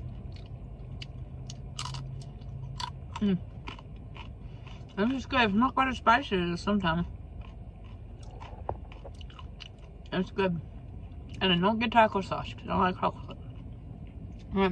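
A young woman chews crunchy fried food close to the microphone.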